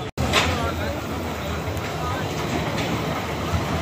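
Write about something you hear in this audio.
A roller coaster car rumbles along its track.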